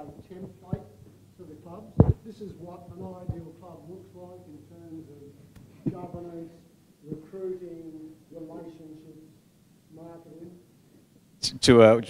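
A man speaks calmly at a distance into a microphone.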